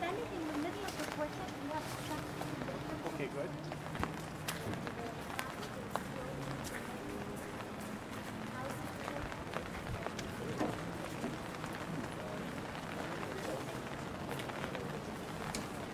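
A group of adults talk at a distance outdoors.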